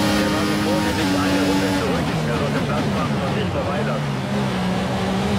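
A racing car engine drops in pitch as the car brakes hard.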